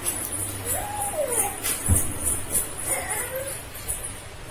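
A toddler squeals and babbles playfully close by.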